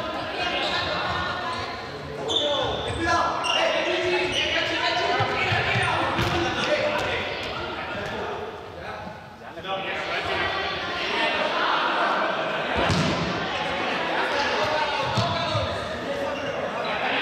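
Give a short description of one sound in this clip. Young people shout and call out to each other, echoing in a large hall.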